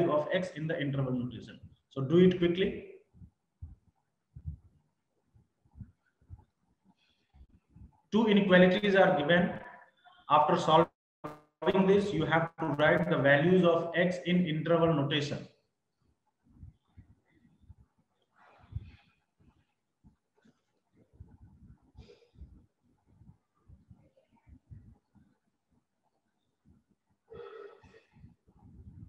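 A man speaks calmly into a close microphone, explaining in bursts with pauses.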